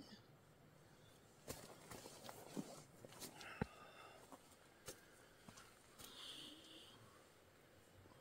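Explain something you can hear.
Tent fabric rustles.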